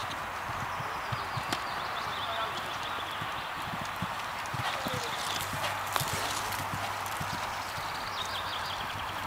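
A horse's hooves thud dully on grass as it canters.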